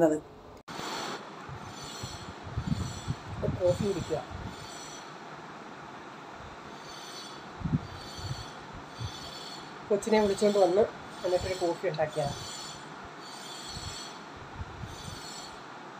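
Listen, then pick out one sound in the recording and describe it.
A woman sips a drink from a mug.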